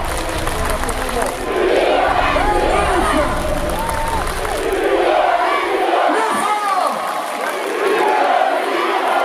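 A large crowd sings and cheers loudly outdoors.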